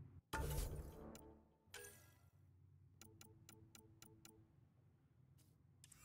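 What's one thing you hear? Interface clicks tick in quick succession.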